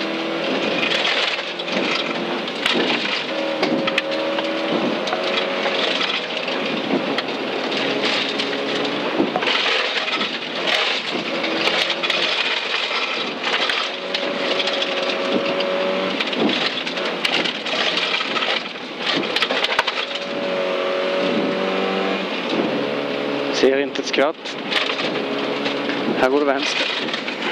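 Gravel rattles and crackles against the underside of a car.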